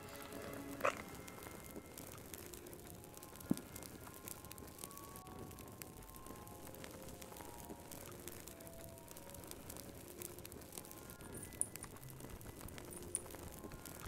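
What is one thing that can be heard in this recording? A fire crackles and pops in a fireplace.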